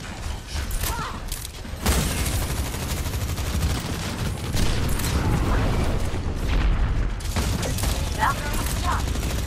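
A video game gun fires in rapid bursts.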